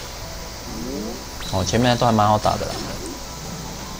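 A swooshing magical blast hits in a game battle.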